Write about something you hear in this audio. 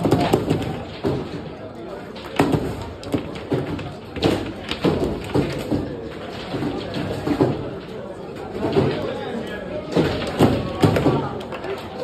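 Foosball rods spin and players knock the ball with sharp clacks.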